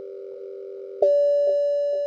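An elevator button is pressed with a click.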